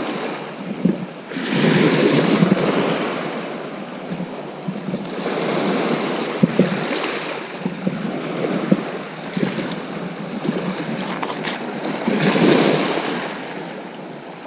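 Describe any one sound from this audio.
Small sea waves break and wash onto the shore outdoors.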